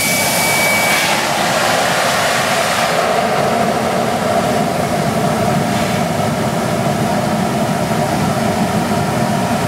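A steam locomotive blasts out steam with a loud, roaring rush.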